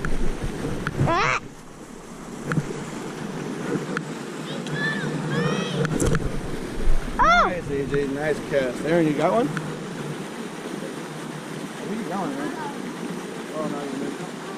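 A young boy talks excitedly nearby.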